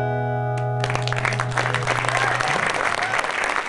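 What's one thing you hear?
An acoustic guitar chord rings out and fades.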